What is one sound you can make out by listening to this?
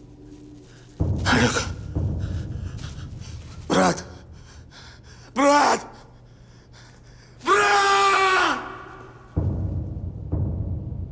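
A man sobs and wails in anguish, close by.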